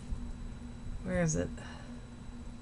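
An older woman speaks briefly, close by.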